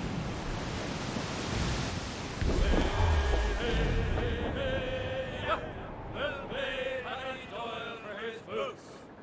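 Waves rush and splash against a sailing ship's hull.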